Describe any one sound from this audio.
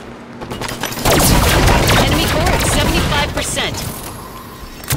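An explosion booms loudly.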